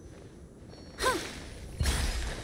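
A magical energy burst whooshes and crackles in a game.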